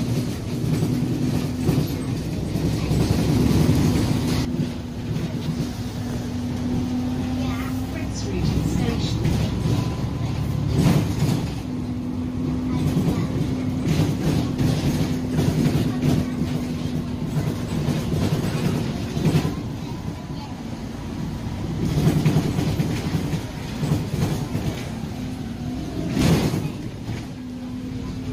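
A bus engine hums steadily while the bus drives along.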